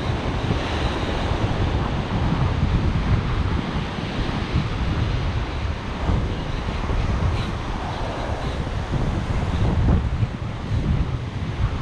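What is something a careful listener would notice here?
Surf waves break and wash up on a sand beach.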